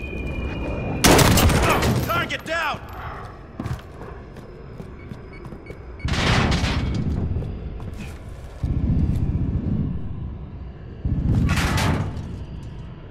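Gunfire bursts out in quick rattling volleys.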